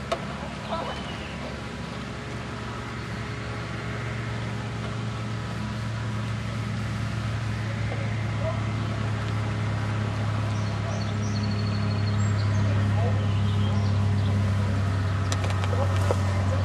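Young people talk nearby outdoors.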